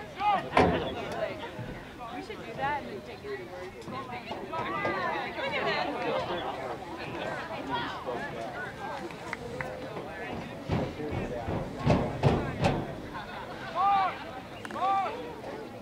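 A crowd of spectators cheers and shouts from a distance outdoors.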